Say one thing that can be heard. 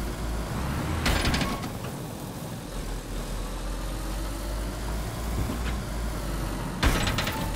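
A car lands with a heavy thud.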